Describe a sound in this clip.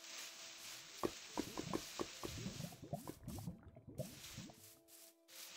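Grass snaps and crunches in quick soft pops.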